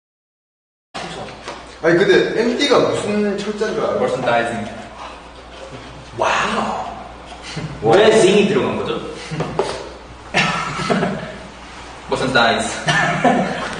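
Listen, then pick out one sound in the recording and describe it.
A young man talks in a lively way, close to a microphone.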